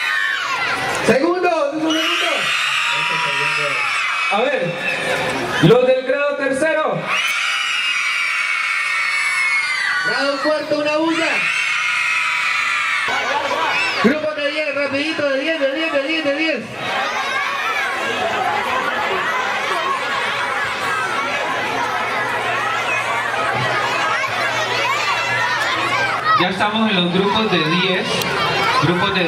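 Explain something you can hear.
A large crowd of children chatters and shouts outdoors.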